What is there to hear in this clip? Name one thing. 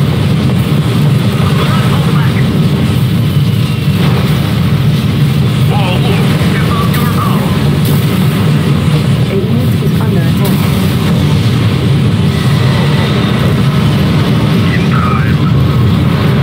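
Explosions boom again and again in a battle.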